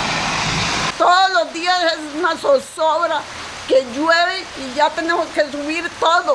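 A middle-aged woman speaks with emotion, close to a microphone.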